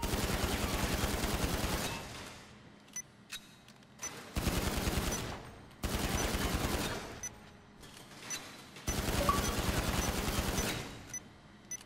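A pistol fires in rapid bursts of shots, echoing in an enclosed hall.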